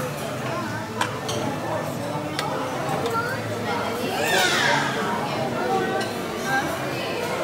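Metal serving tongs clink against a tray.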